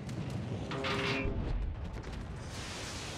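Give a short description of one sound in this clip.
An explosion booms with a low rumble.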